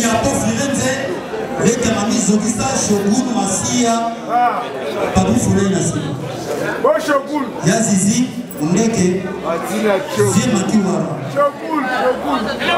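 A young man speaks with animation into a microphone over loudspeakers.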